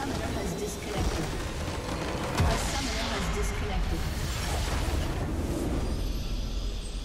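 A huge magical explosion booms and crackles, then slowly fades away.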